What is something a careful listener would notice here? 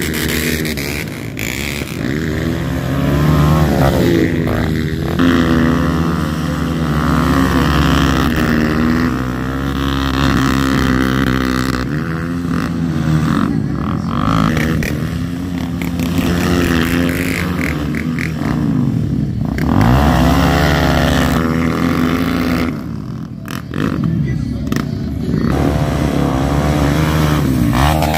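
Dirt bike engines rev loudly up and down close by.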